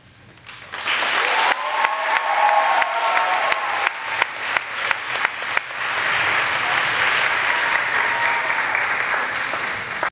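An audience cheers and screams loudly in a large echoing hall.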